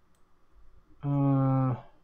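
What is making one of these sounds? A man says a long drawn-out word over an online call.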